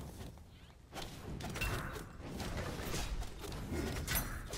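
Magic spells whoosh and crackle in a video game.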